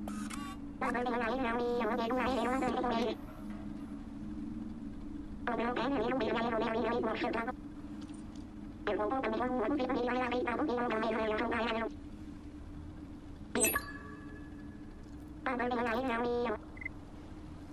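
A robotic voice babbles in short, chirpy bursts nearby.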